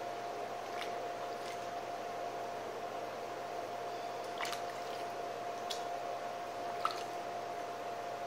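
A sponge splashes in a bucket of water.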